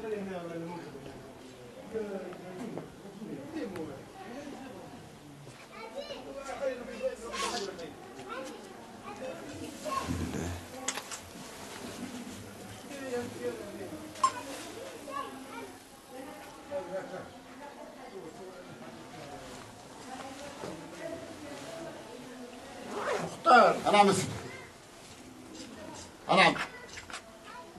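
An elderly man prays aloud in a low chanting voice, close by.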